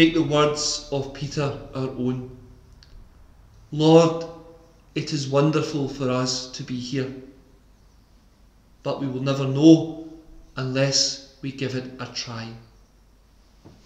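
A man speaks calmly into a microphone in a softly echoing room.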